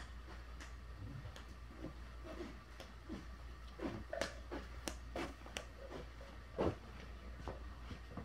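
Footsteps thud on a carpeted floor close by.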